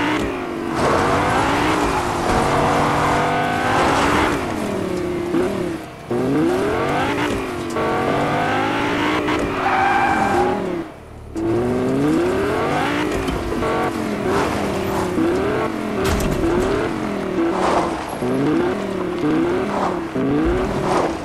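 A car engine revs and hums as a sports car drives.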